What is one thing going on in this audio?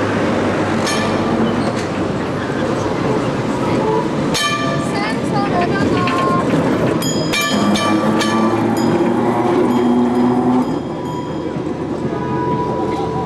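A tram rumbles over the rails close by.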